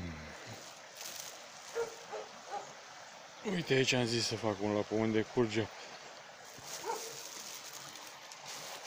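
Dry grass and twigs rustle and crackle close by.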